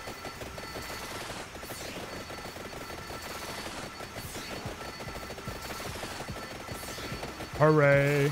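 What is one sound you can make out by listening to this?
Rapid game sound effects of weapons hitting enemies crackle and pop nonstop.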